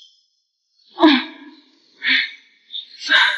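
A young woman moans, muffled and distressed.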